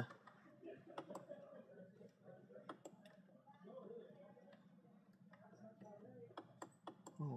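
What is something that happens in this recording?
Buttons click softly under a finger.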